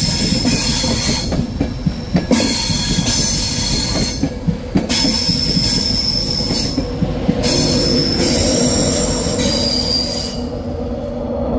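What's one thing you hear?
A train rushes past close by, its wheels clattering over the rail joints.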